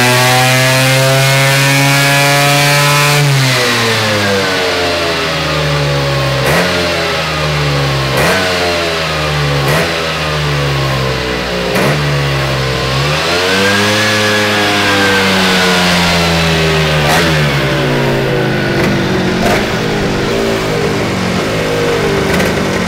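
A small two-stroke engine revs high, drops in pitch, then rises and falls again several times.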